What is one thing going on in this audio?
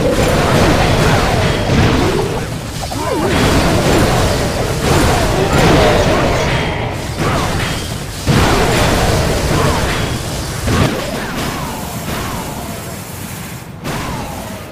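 Fire blasts and explosions crackle.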